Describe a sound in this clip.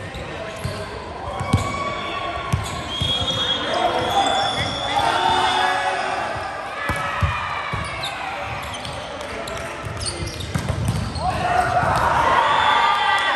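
Shoes squeak sharply on a hard floor in a large echoing hall.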